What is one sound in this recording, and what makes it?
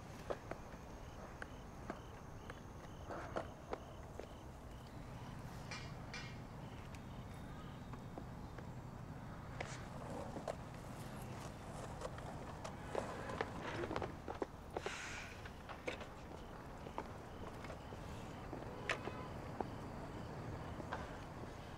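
Roller skate wheels rumble over a hard outdoor court.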